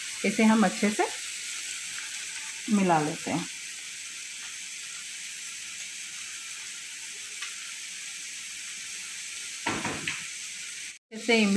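Wet food squelches as hands knead it in a bowl of liquid.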